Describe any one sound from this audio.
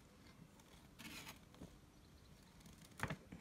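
Paper pages rustle and crinkle as they are handled.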